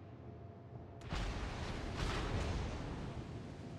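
Heavy guns fire with deep booms.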